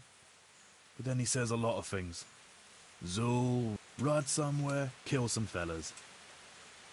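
A second man answers with animation, close by.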